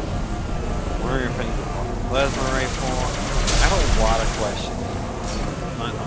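A hovering vehicle engine hums.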